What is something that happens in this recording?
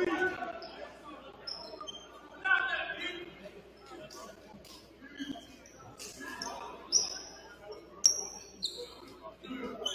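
Players call out in a large echoing gym.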